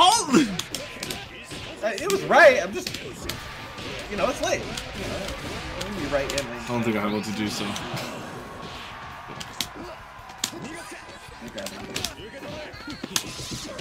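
Punches and kicks land with sharp smacks and thuds.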